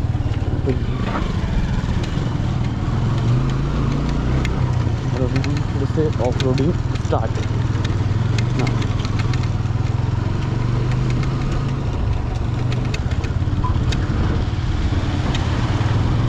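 Tyres crunch and rattle over loose gravel.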